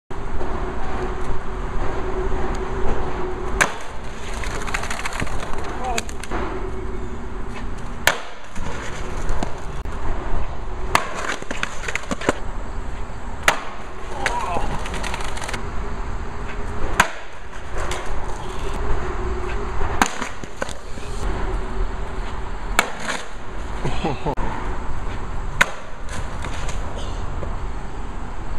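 A skateboard's wheels roll over rough concrete.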